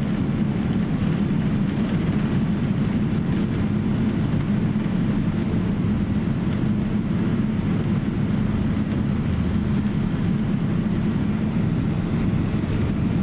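A jet engine hums with a low, steady drone.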